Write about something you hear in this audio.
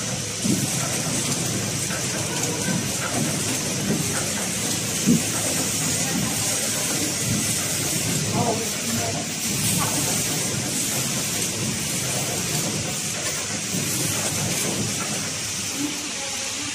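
A packaging machine hums and clatters steadily.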